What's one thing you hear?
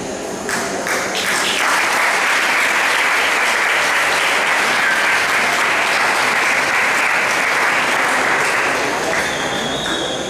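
A crowd applauds and cheers loudly in a large echoing hall.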